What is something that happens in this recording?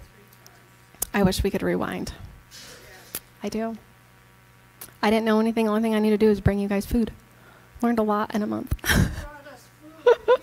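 A woman speaks with animation through a headset microphone.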